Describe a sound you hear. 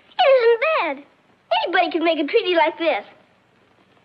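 A young girl speaks brightly and with animation, close by.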